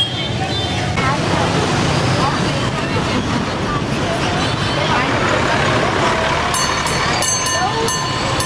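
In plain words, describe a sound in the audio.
Traffic with buses, cars and motorbikes rumbles past outdoors.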